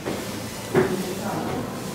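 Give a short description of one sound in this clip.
A button clicks when pressed.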